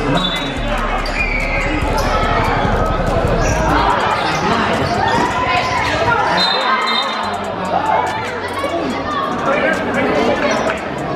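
A crowd of spectators cheers and chatters loudly.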